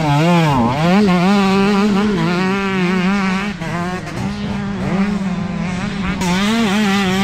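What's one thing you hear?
A motorcycle engine revs loudly, its pitch rising and falling.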